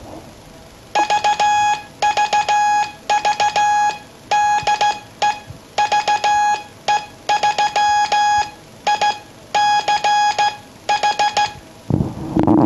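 A telegraph key clicks as it is tapped.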